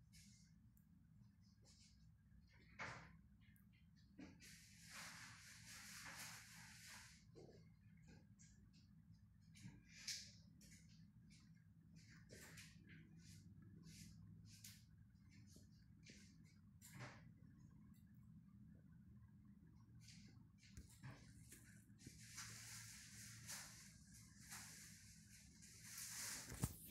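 Coins chime in quick bursts as they are collected.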